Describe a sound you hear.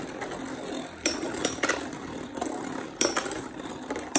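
Spinning tops clash with sharp clicks.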